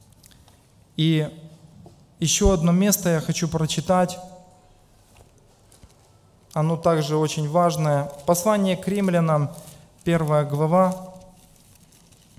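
A middle-aged man speaks calmly into a microphone, in short bursts with pauses.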